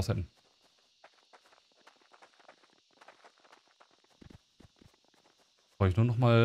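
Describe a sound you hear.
Light footsteps patter softly over grass.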